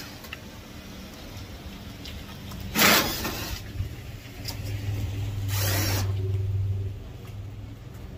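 Hand tools clink and scrape on metal.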